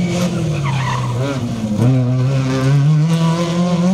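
Tyres crunch and skid on loose gravel.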